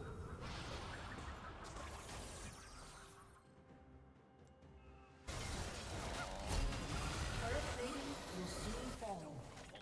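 Magic blasts and blows from a video game battle whoosh and thump.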